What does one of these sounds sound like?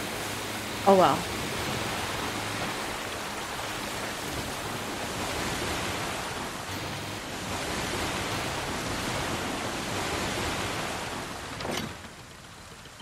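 Water rushes and splashes against a moving boat.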